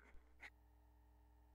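A record clicks as it is dropped onto a turntable.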